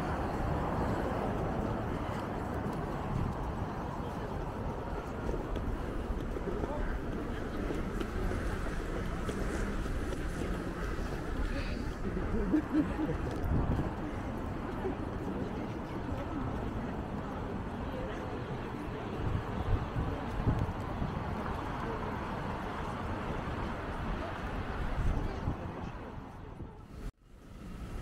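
Footsteps tap on the pavement.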